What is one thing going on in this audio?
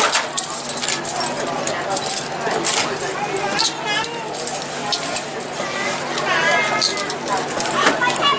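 Metal handcuffs clink and rattle.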